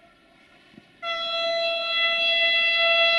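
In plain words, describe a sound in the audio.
A train sounds a loud, steady horn.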